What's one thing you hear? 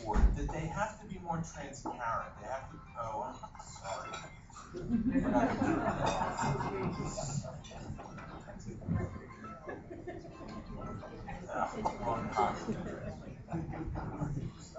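A middle-aged man speaks calmly to an audience.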